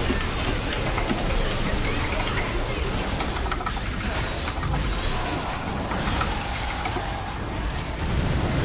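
Blades slash and strike in rapid, noisy combat.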